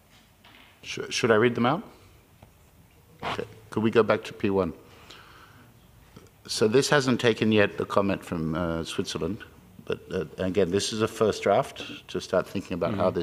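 A man speaks calmly through a microphone, with pauses between phrases.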